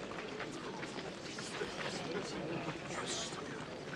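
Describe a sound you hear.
Footsteps shuffle over the ground.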